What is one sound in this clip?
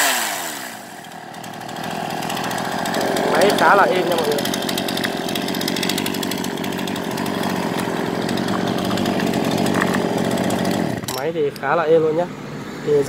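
A chainsaw engine idles steadily.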